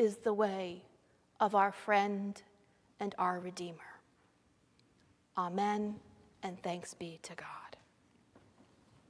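A middle-aged woman sings through a microphone in an echoing hall.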